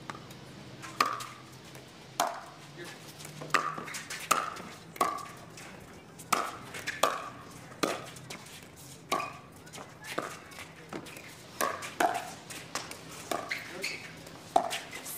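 Paddles strike a plastic ball with sharp, hollow pops in a quick rally.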